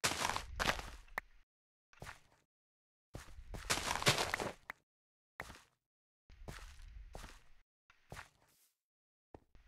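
Leafy plants are pulled up in quick, rustling bursts.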